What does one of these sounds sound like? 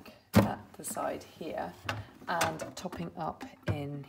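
Plastic clatters as a water tank slides out of a coffee machine.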